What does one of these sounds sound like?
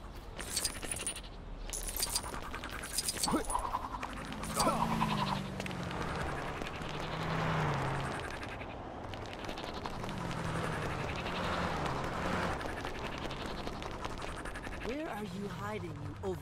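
An electric whoosh crackles and rushes steadily as a character speeds along.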